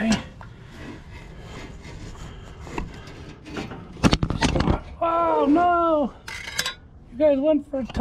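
Metal clanks as a hand handles an exhaust pipe.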